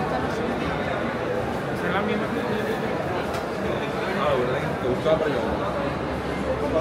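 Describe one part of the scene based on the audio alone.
A crowd of people chatters in a busy indoor hall.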